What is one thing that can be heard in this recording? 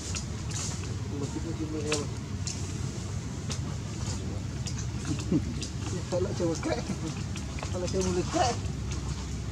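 A baby monkey squeaks softly.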